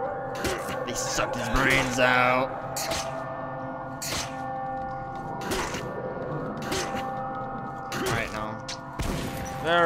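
Heavy blows thud sharply against a creature.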